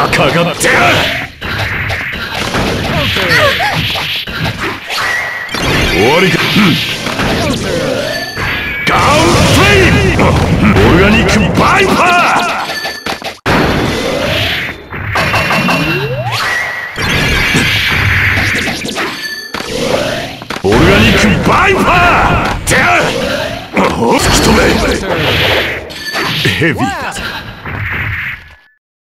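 Game characters shout and grunt during attacks.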